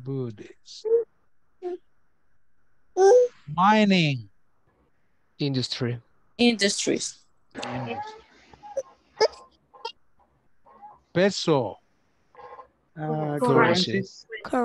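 A middle-aged man speaks calmly through a microphone over an online call.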